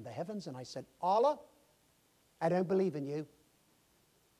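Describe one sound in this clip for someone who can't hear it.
An elderly man preaches with emphasis through a microphone.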